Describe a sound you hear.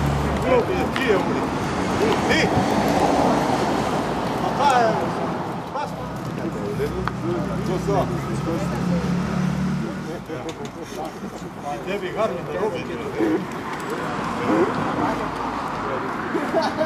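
Several men chat outdoors in a lively group.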